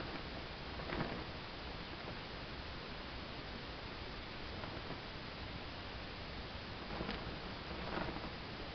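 A flag swishes through the air as it is swung.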